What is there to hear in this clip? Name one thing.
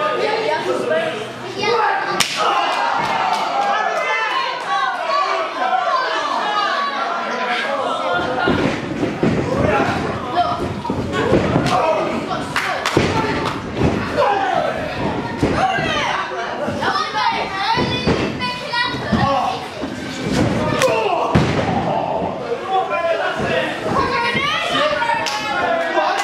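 A crowd of children and adults cheers and shouts in an echoing hall.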